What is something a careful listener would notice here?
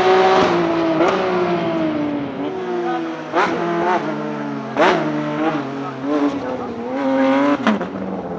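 A racing car engine pops and crackles on gear shifts.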